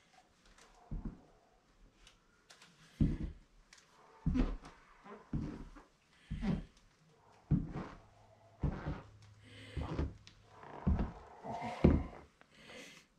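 Boots thud on a wooden floor, coming closer.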